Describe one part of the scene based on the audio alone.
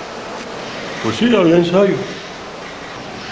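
An elderly man speaks.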